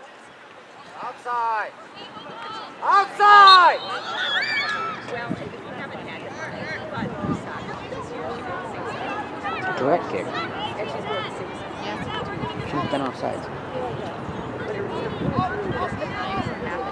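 Adults and children chatter nearby.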